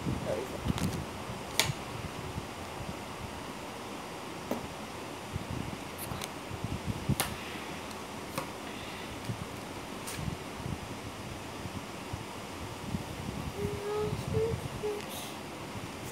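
Cards click and rustle in a boy's hands.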